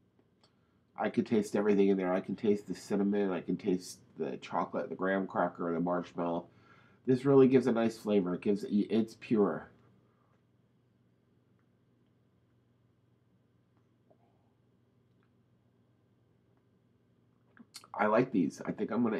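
A middle-aged man speaks calmly, close to the microphone.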